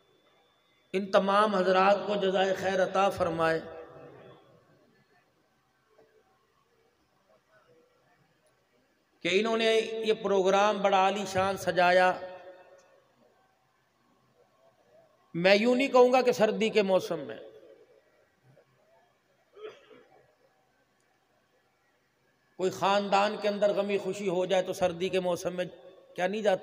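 A man chants melodically into a microphone, amplified through loudspeakers, in bursts with pauses in an echoing hall.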